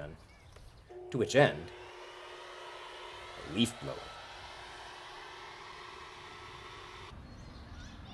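A leaf blower whirs steadily close by.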